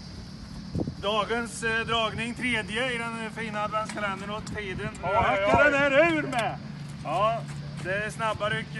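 Adult men talk close by.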